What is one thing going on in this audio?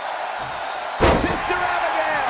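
A body slams hard onto a wrestling ring's mat with a loud thud.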